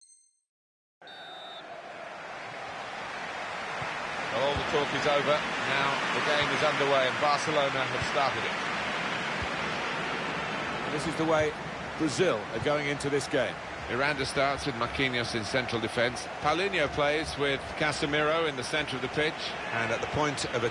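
A large stadium crowd roars, swelling steadily.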